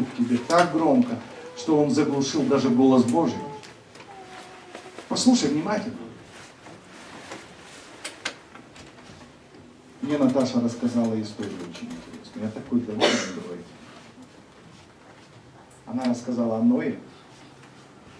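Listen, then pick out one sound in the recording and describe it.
A man speaks calmly into a microphone, in bursts with pauses, in a reverberant hall.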